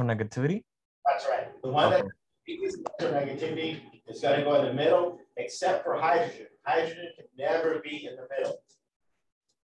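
A man answers calmly, heard through a classroom microphone.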